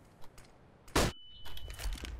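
A grenade bursts with a sharp bang.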